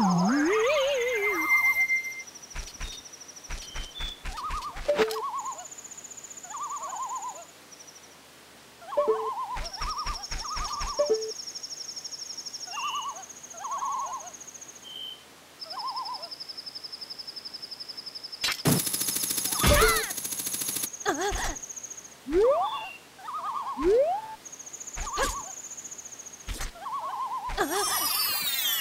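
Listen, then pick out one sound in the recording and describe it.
Electronic game sounds beep, chime and blip in short bursts.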